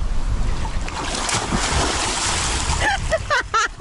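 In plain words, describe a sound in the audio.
A man dives and splashes into a pool.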